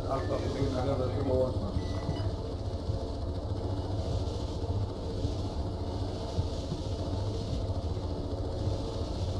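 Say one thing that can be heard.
A helicopter's engine and rotor drone steadily and loudly.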